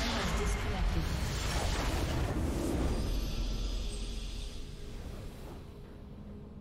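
A huge magical explosion roars and crackles, then fades away.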